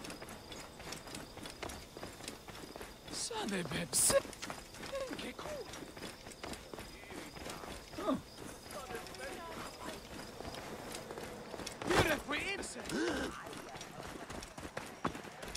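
Footsteps run quickly over stone and sand.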